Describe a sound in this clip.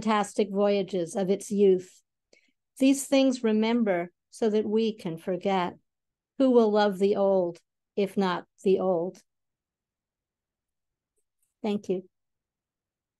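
An elderly woman reads aloud calmly over an online call.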